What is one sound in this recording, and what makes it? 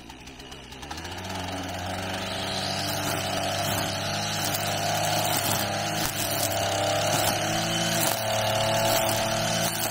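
A grass trimmer whines loudly while cutting grass.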